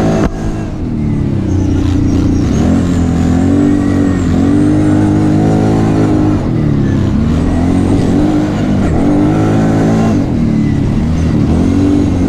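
An ATV engine revs up and eases off.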